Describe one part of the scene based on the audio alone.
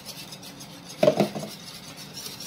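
A plastic jug is set down on a counter with a knock.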